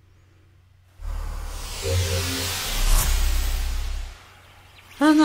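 A shimmering magical whoosh swells and then fades.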